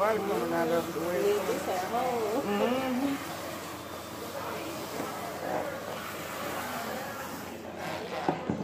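Water sprays from a hose nozzle.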